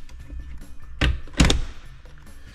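A plastic latch clicks sharply.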